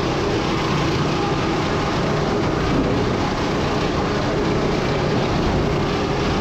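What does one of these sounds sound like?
A log rolls and knocks along a conveyor.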